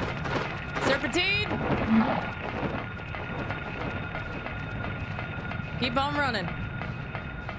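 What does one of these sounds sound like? A young woman speaks briefly into a microphone.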